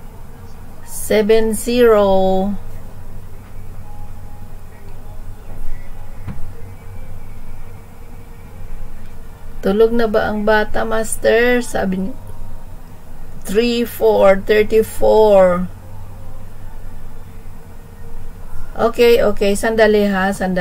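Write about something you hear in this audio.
A middle-aged woman speaks over an online call.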